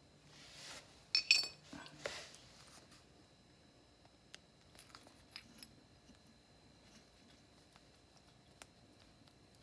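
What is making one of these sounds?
Hands handle a small metal part with soft clicks and taps.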